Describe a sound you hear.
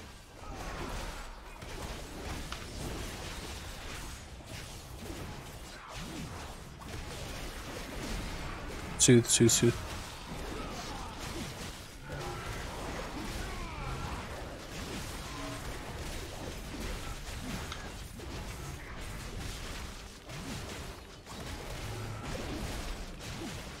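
Spell blasts and weapon hits crash repeatedly in a busy fantasy battle.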